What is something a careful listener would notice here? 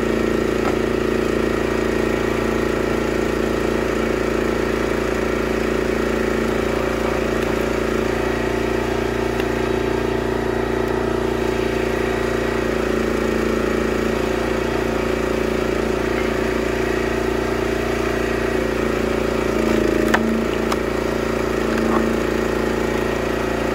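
A log splitter's engine runs with a steady loud drone.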